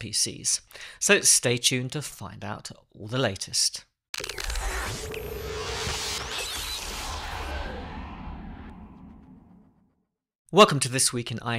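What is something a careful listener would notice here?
A man speaks with animation, close into a handheld microphone.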